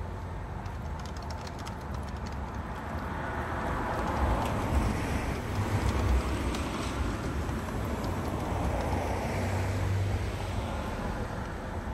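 Laptop keys click softly as someone types.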